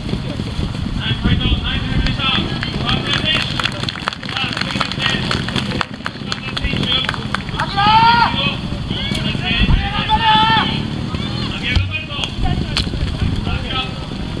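A man speaks into a microphone, heard through a loudspeaker outdoors.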